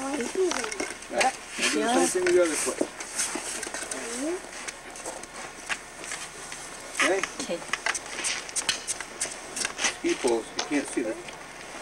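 Skis scrape and click on packed snow.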